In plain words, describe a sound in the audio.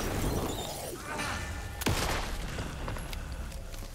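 A gunshot bangs.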